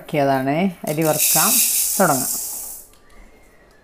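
Dry grains pour with a hiss into a metal pan.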